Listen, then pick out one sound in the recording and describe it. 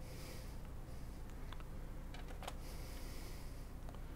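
A laptop's metal cover clicks into place.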